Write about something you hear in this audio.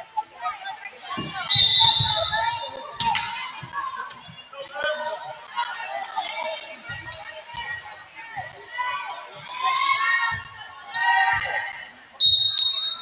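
Players call out to each other on the court.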